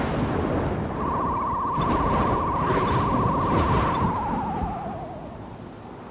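A small flying craft whirs overhead, its whine dropping in pitch as it passes.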